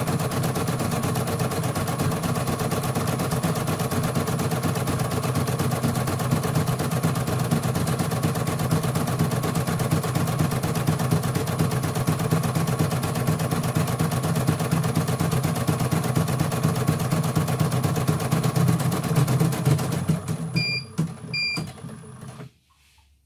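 A sewing machine hums and rattles steadily as its needle stitches rapidly.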